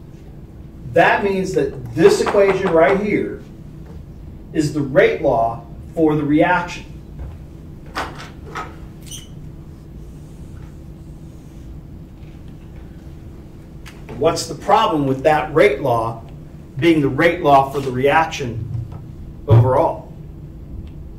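A man lectures in a room with slight echo, speaking in short bursts with pauses.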